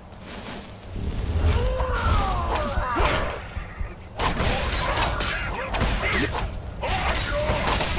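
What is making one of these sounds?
A spell crackles and whooshes.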